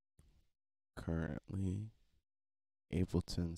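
A man talks calmly and close into a microphone, in short phrases.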